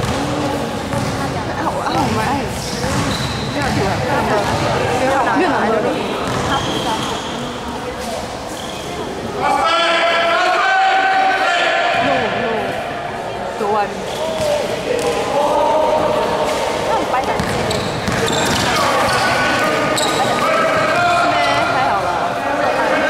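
Boys shout and call to each other in a large echoing hall.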